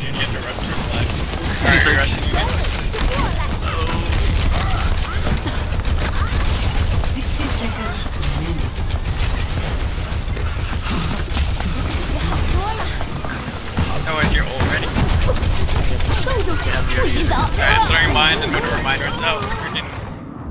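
A game's energy gun fires in steady streams.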